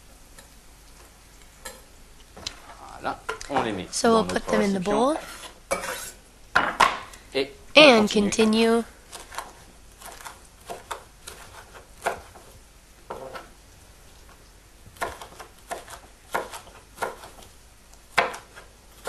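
A knife chops steadily on a wooden cutting board.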